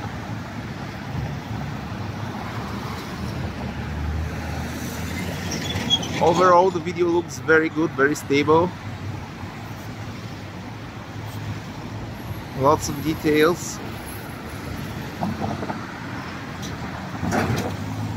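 Cars drive past on a busy street outdoors.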